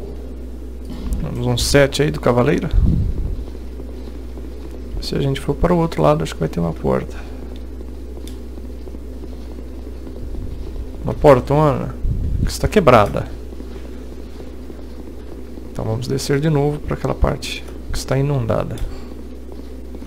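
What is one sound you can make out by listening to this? A young man talks calmly into a close headset microphone, in short bursts with pauses.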